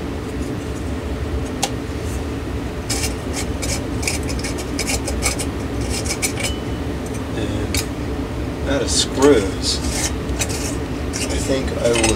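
A glass light shade clinks and scrapes as it is fitted.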